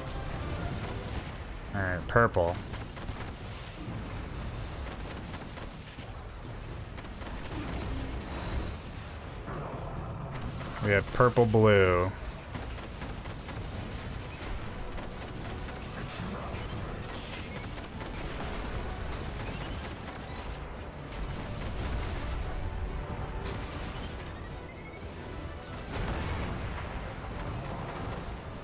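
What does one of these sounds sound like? Gunfire and blasts sound steadily.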